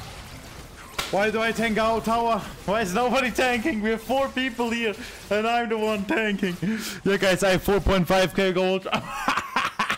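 A young man speaks loudly and animatedly into a close microphone.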